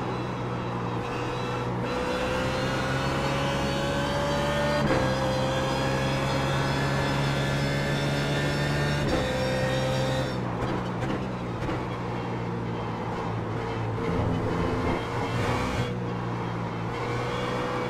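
A racing car engine roars steadily, rising in pitch through the gears.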